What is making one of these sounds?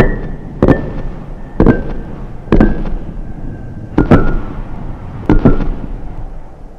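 Heavy stone slabs topple and knock against each other one after another.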